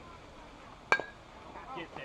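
A metal bat cracks sharply against a baseball.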